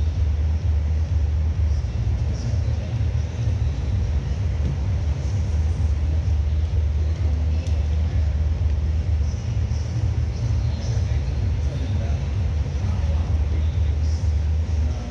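Bodies shuffle and thud softly on a padded mat.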